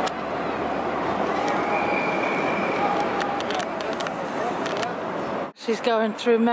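A crowd murmurs outdoors with busy city street noise.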